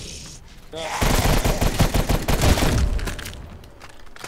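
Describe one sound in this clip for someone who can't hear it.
A rifle fires in a rapid burst.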